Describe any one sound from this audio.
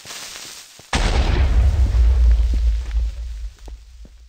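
An explosion booms loudly and rumbles.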